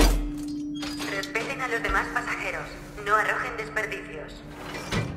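A handheld tool whirs and rattles against metal.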